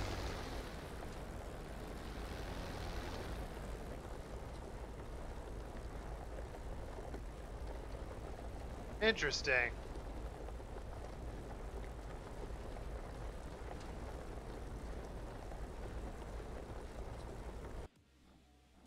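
A propeller plane's engine hums steadily at idle.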